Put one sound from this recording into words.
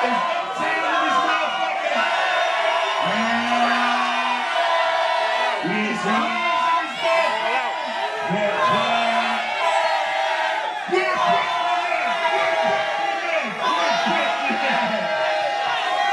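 A crowd cheers and shouts along.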